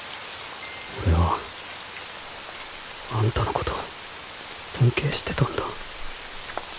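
A young man speaks softly, close by.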